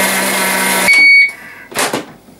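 A kitchen appliance beeps.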